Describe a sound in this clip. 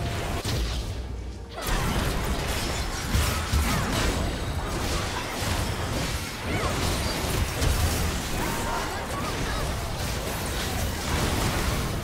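Spell blasts and magic effects crackle and whoosh during a fast battle.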